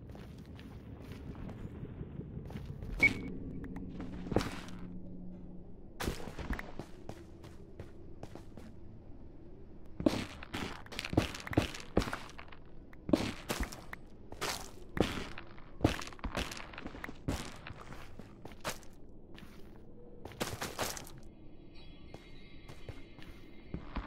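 Blocks crack and break with short crunching sounds.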